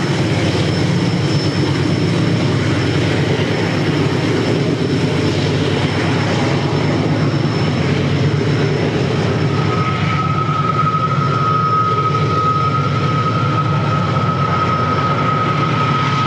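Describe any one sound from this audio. Diesel locomotives rumble steadily as a freight train climbs.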